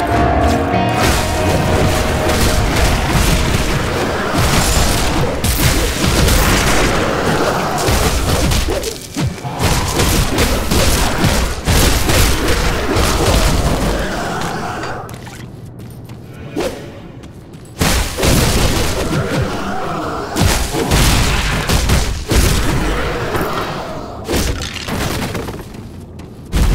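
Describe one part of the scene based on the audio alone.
Magic spells crackle and blast in a fight with monsters.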